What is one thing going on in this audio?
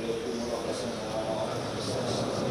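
A man recites a prayer aloud.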